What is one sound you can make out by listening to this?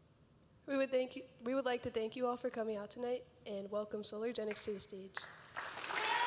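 A young woman speaks clearly through a microphone in a large echoing hall.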